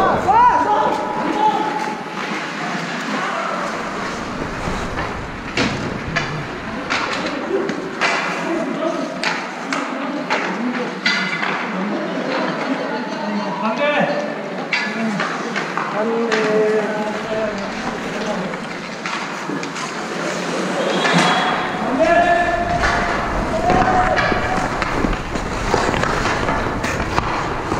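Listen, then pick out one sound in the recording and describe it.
Hockey sticks clack against the ice and a puck.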